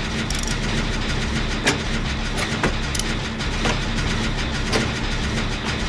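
Metal parts clank and click as an engine is worked on by hand.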